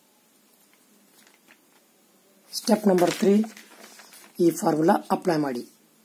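A sheet of paper rustles as it is handled.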